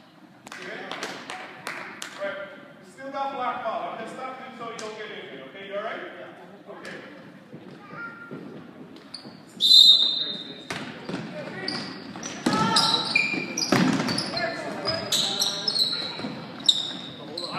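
Young boys shout to each other in a large echoing hall.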